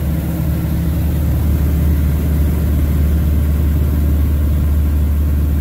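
A propeller plane's engine drones loudly and steadily from close by.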